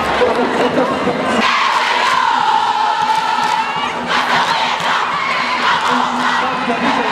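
A large crowd of young people sings and cheers loudly in a stadium.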